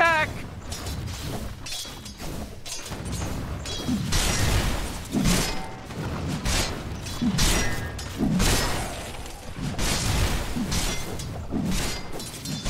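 Game characters clash in battle with spell and weapon effects.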